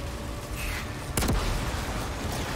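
A gun fires in short bursts.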